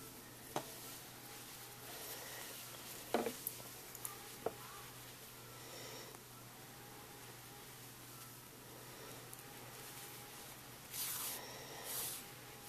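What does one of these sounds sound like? Knitted fabric rustles and scrapes softly as fingers handle it close by.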